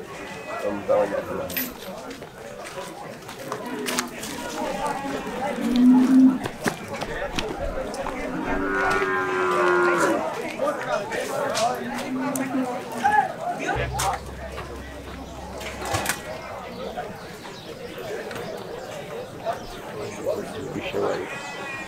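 A crowd of men chatters outdoors in the distance.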